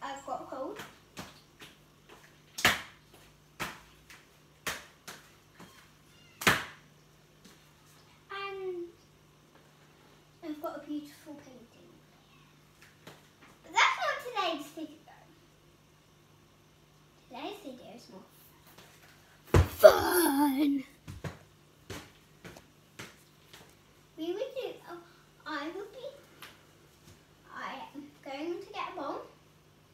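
A young girl talks close by in bursts, with long pauses.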